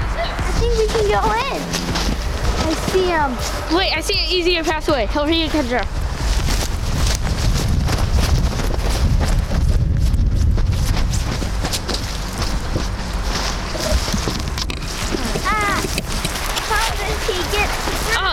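Footsteps crunch through snow and dry brush.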